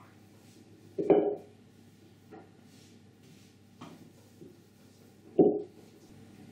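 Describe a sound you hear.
A wooden rolling pin knocks on a table.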